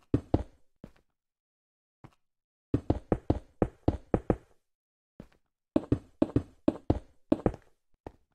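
Blocks are dug out and placed with quick, crunchy thuds in bursts.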